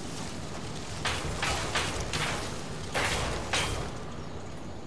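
Boots scrape and thud on wood as a man climbs over a fence.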